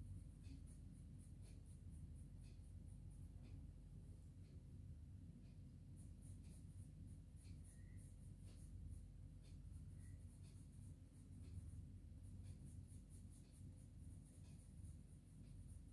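A pencil scratches softly on paper in short strokes.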